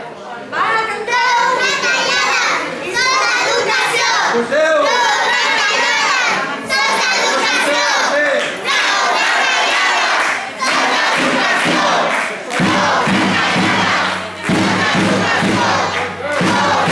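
A crowd of adults and children chants in unison.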